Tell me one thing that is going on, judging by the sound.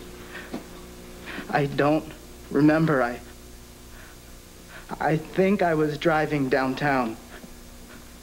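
A young man speaks emotionally and close by, his voice straining.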